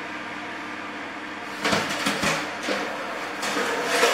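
A metal tray scrapes as it slides into an oven.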